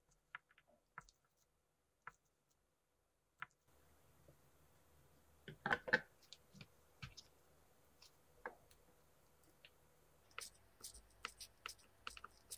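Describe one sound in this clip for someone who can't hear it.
A screwdriver clicks and scrapes against a metal screw.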